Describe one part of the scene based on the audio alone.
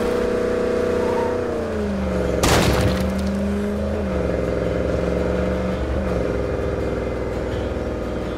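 A truck engine hums steadily and shifts pitch as the truck drives along a road.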